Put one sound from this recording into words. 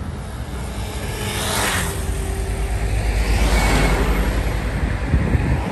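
Cars rush past close by on a road.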